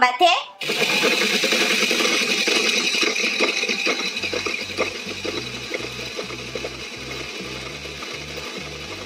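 A toy blender whirs steadily with a buzzing motor.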